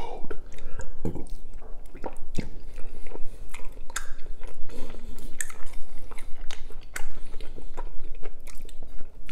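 Food crunches sharply as a man bites into it.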